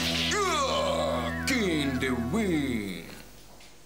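A young man sings loudly in a wavering, swooping voice nearby.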